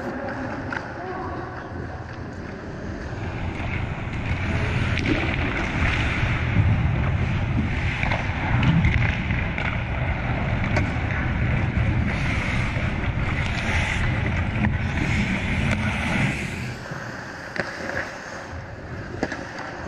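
Skate blades scrape and hiss across the ice close by, in a large echoing rink.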